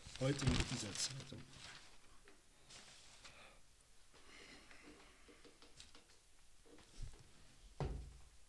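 Newspaper pages rustle.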